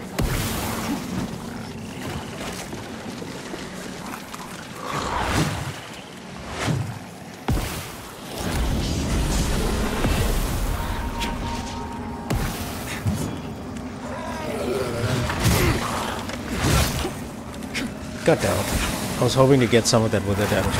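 A weapon swings through the air with a whoosh.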